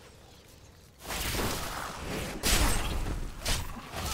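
Fiery blasts crash and roar in loud bursts.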